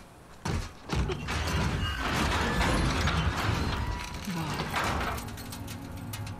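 Heavy metal doors scrape and creak open.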